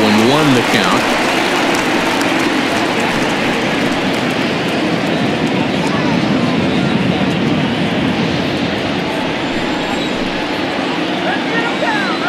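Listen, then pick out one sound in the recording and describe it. A large stadium crowd murmurs and cheers steadily throughout.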